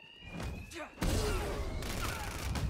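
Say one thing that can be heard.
Heavy blows land in a scuffle.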